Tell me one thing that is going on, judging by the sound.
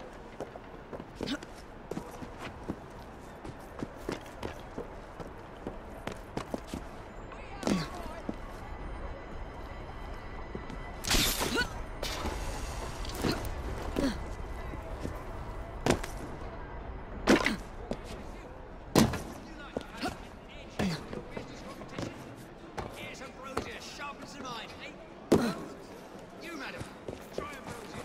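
Footsteps patter quickly on roof tiles.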